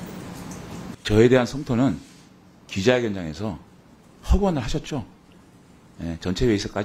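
A middle-aged man speaks firmly through a microphone, with pauses between phrases.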